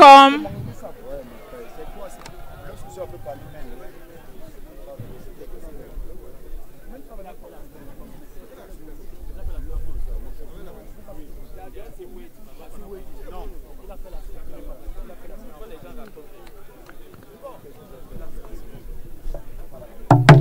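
A crowd of people murmurs and chatters in the distance outdoors.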